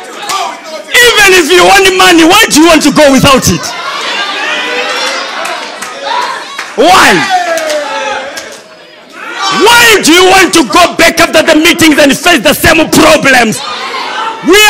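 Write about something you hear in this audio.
A crowd cheers and shouts in response.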